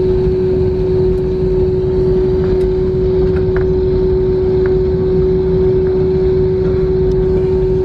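A jet engine hums steadily from inside a plane's cabin.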